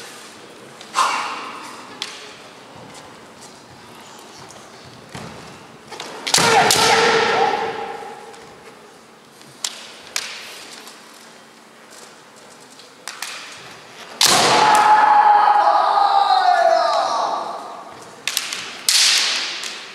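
Bamboo swords clack sharply against each other.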